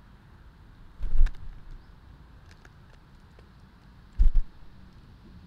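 Small birds' wings flutter close by as they land.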